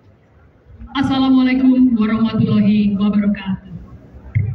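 A man's voice booms through loudspeakers.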